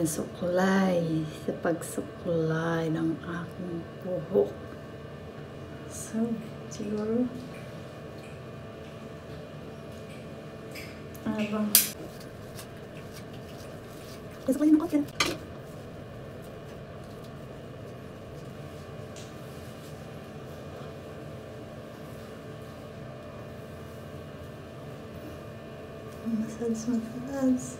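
A woman talks calmly, close by.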